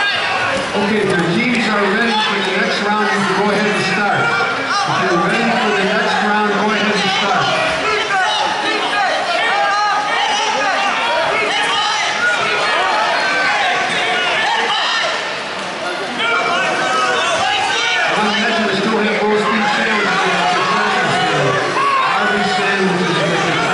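Wrestlers thump and scuffle on a mat.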